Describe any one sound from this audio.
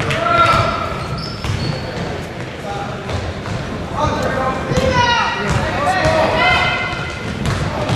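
Spectators cheer and shout in a large echoing gym.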